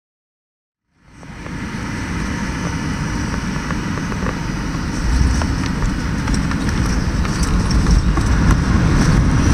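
Aircraft engines roar steadily and grow louder as a plane speeds along a runway.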